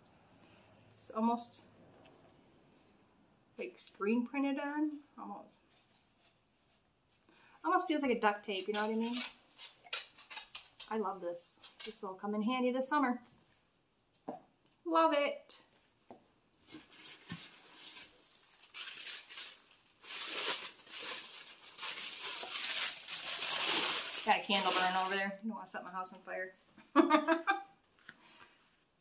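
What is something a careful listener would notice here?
A woman talks calmly and close by.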